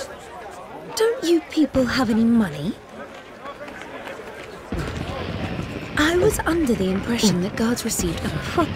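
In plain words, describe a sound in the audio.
A young woman speaks calmly and coolly.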